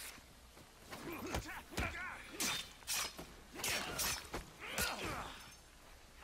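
Punches and blows thud in a brawl.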